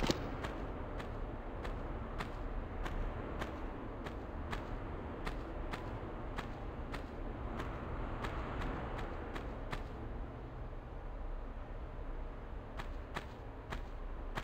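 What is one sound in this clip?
Footsteps run quickly in a steady rhythm.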